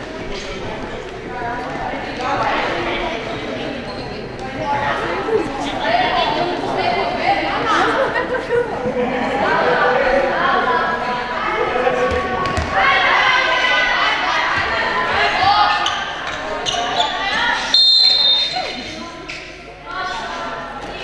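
Young women shout and call to each other across an echoing hall.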